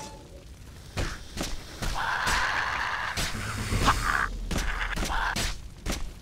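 Fists thump repeatedly against a creature.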